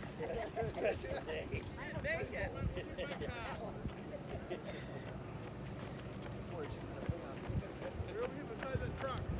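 Runners' footsteps patter on pavement, coming closer.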